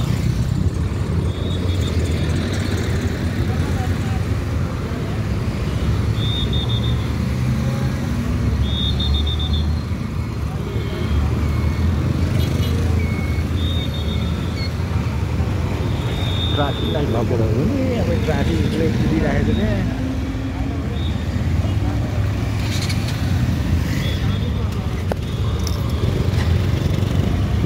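Traffic roars steadily outdoors.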